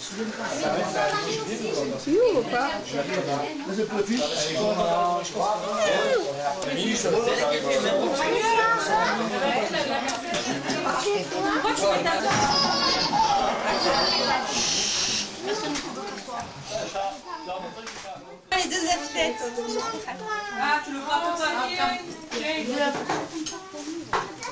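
A crowd of men and women chatter at a table.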